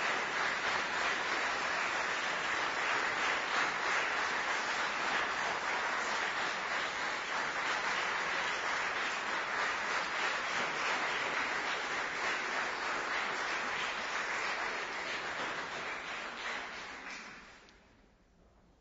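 An audience applauds steadily in a large hall, then the clapping fades away.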